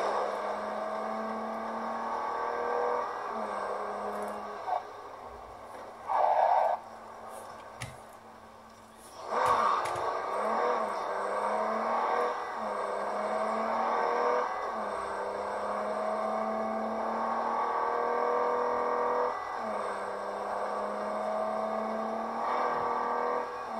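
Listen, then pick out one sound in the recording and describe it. A car engine hums and revs up and down as the car speeds along.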